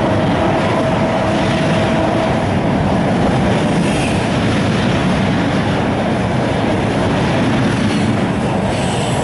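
A train carriage rumbles and rattles steadily along the tracks.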